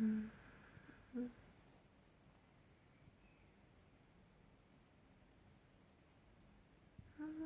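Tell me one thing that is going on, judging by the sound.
A young woman hums briefly and softly close by.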